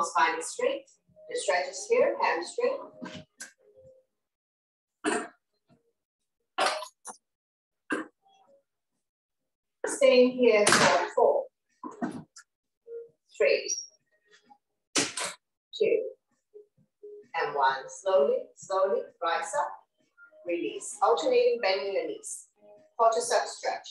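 A woman speaks calmly and clearly into a close microphone, giving instructions with pauses.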